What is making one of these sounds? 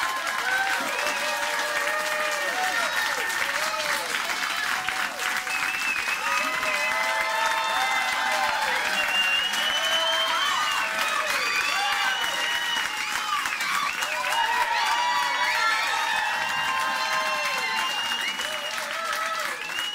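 A crowd cheers loudly in a large room.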